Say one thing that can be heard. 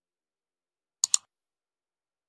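A mouse button clicks twice in quick succession.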